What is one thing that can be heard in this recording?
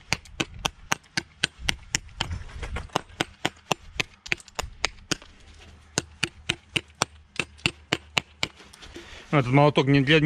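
A hammer taps sharply and rapidly on a stone.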